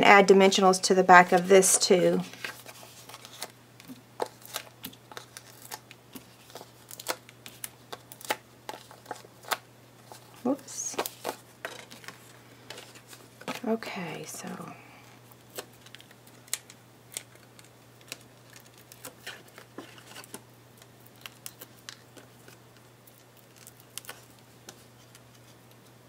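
Card stock rustles and taps against a tabletop as hands handle it.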